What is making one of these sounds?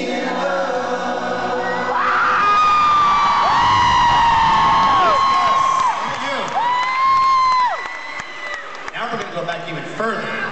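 An acoustic guitar strums through loudspeakers.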